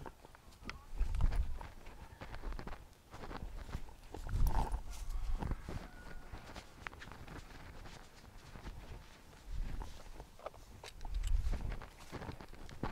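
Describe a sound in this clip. Wind blows against the microphone in gusts.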